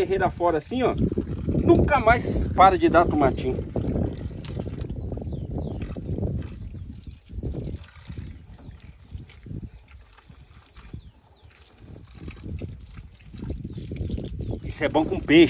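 Hands rub and rinse small tomatoes under running water.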